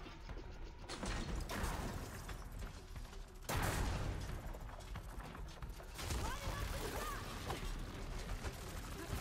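Loud crashing impacts and blasts burst out.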